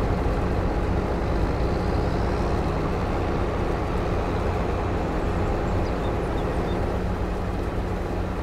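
A combine harvester engine drones steadily.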